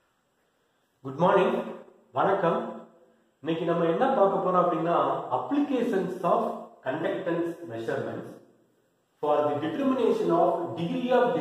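A man speaks calmly and clearly into a close microphone, in a lecturing manner.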